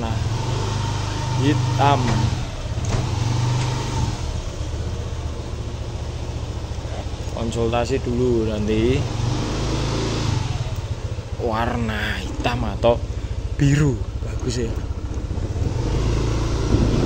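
A scooter engine idles with a low steady hum.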